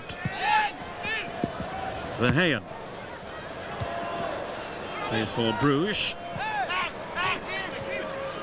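Fans in a stadium crowd whistle shrilly in bursts.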